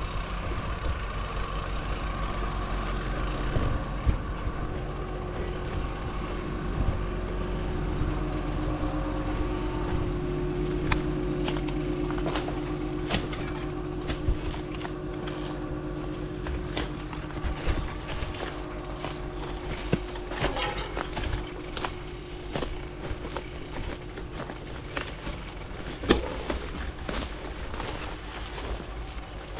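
Bicycle tyres crunch over dirt, twigs and leaves.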